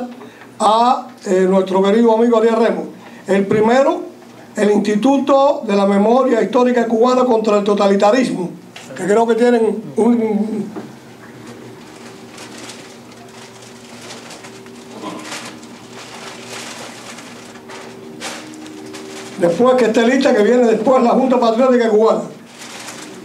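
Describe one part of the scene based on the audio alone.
An elderly man speaks calmly into a microphone over a loudspeaker.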